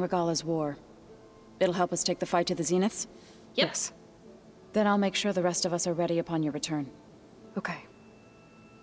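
A young woman speaks calmly close to a microphone.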